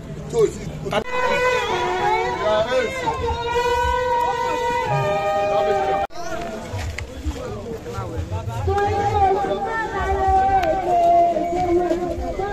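A crowd sings together outdoors.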